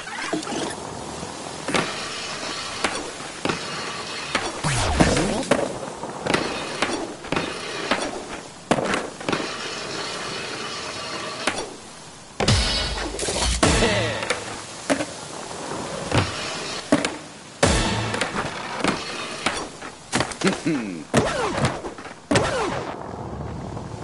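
Skateboard wheels roll steadily over smooth concrete.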